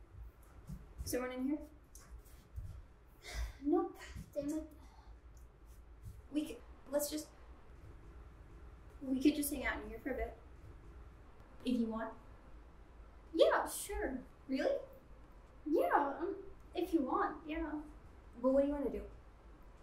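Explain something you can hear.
A young woman speaks softly and hesitantly, close by.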